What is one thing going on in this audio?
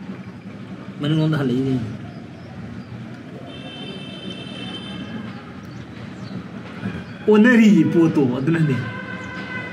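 A young man speaks briefly and casually, close by.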